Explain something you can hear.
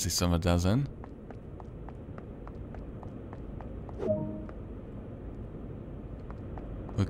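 Footsteps walk steadily on a hard stone floor.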